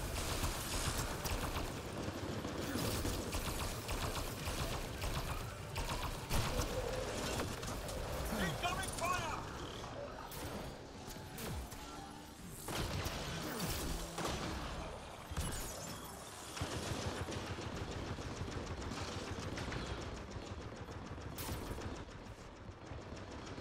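Gunfire and energy blasts crackle in rapid bursts.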